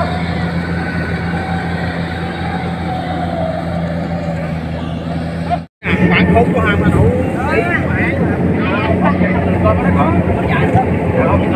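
A combine harvester drones in the distance.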